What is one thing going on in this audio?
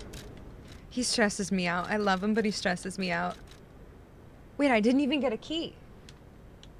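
A young woman talks casually into a nearby microphone.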